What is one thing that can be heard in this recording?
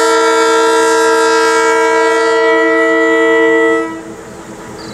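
A diesel locomotive blows its horn in a long, steady blast.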